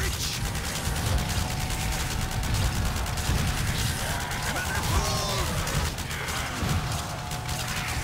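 Zombies growl and moan.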